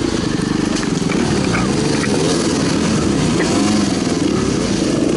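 Other dirt bike engines rumble a little way ahead.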